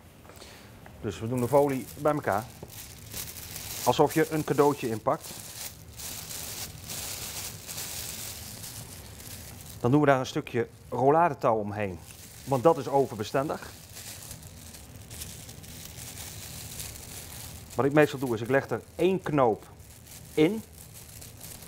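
A man talks calmly, close by, in short phrases.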